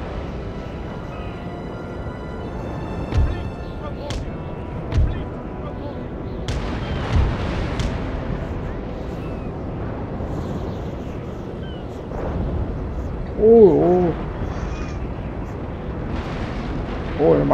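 Waves wash steadily across open sea.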